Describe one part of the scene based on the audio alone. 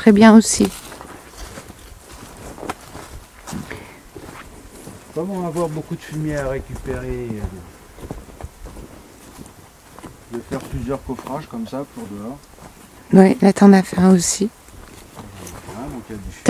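Footsteps crunch on dry leaves and grass.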